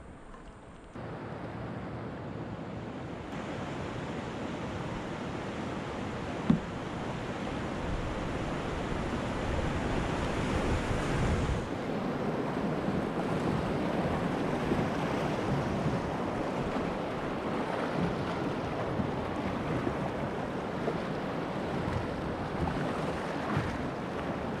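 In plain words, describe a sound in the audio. Rushing river water splashes and roars around a kayak, growing louder.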